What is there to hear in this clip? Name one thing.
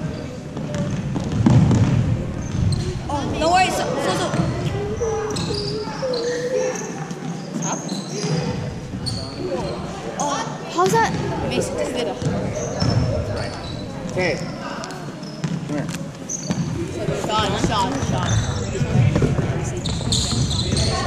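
Young people's voices chatter and call out in a large echoing gym.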